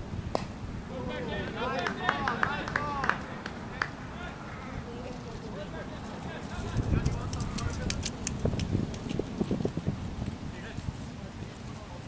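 Men talk and call out to each other at a distance outdoors.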